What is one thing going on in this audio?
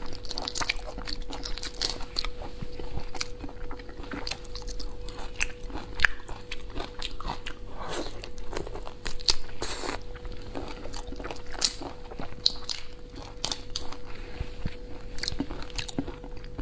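Shrimp shells crack and crunch close to a microphone.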